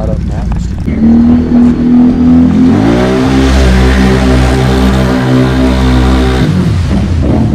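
A quad bike engine revs hard and roars through mud.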